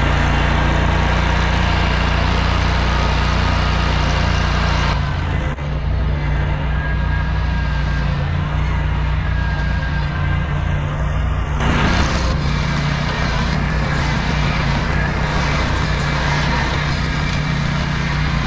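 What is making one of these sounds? A mower's blades cut through tall grass.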